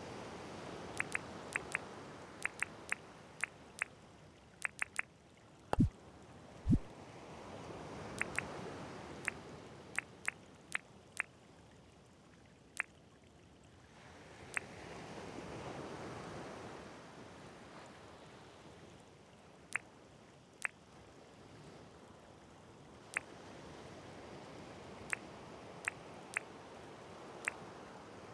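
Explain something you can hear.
Short, soft clicks tick over and over.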